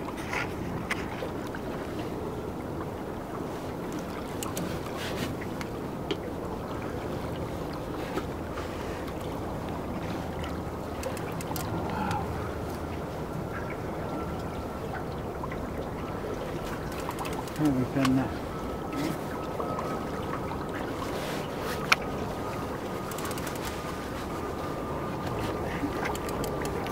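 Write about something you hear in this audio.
Wind and water rush steadily past a small boat on open water.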